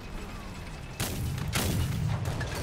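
Tank cannons fire with loud booms.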